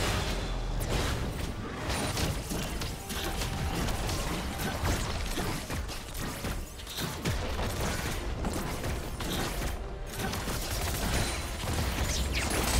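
Fantasy spell blasts and weapon hits crackle and whoosh in quick bursts.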